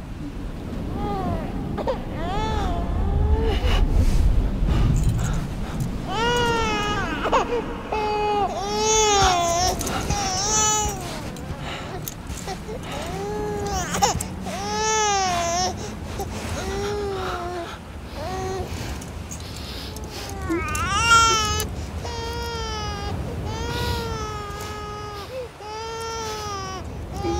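A newborn baby cries and wails loudly, close by.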